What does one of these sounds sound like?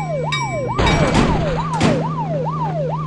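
A vehicle crashes into another with a loud bang.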